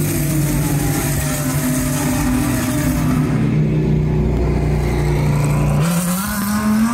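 Racing car engines roar loudly as the cars speed down the track.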